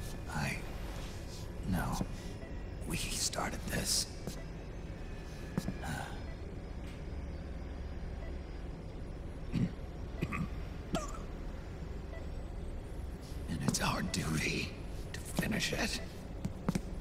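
A man speaks in a low, gravelly voice, calmly and close.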